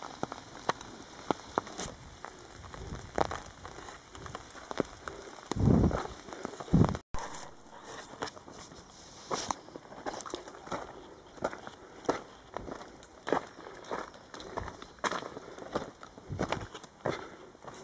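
Footsteps crunch on rocky ground and dry leaves, close by.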